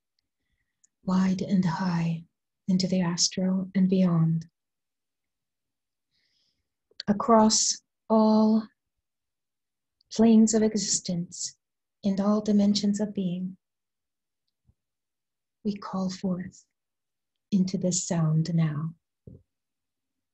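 A woman speaks slowly and calmly close to a microphone, with pauses.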